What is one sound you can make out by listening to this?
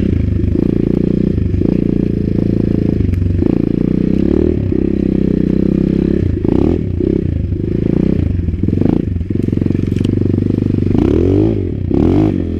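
A dirt bike engine revs hard and eases off over and over while riding a rough trail.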